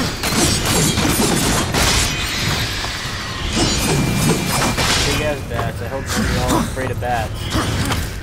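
A blade slashes and clangs in a fight.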